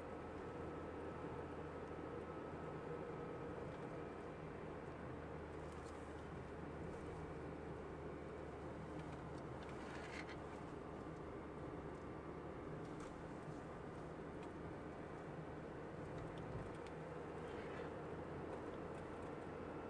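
Tyres roll on asphalt with a steady rumble.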